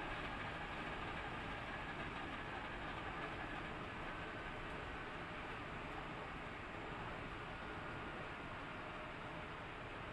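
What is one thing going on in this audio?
Wind rushes past the car.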